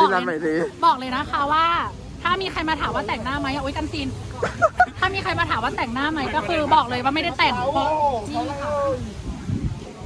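A young man talks excitedly close to the microphone.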